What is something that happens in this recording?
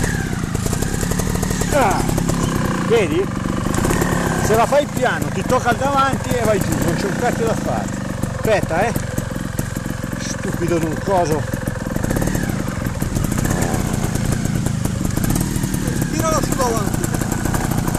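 A motorcycle engine runs close by, revving up and down.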